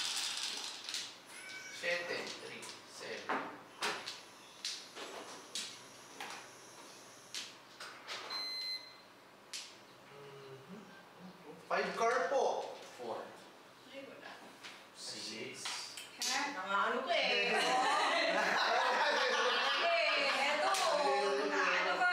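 Mahjong tiles click and clack against each other on a table.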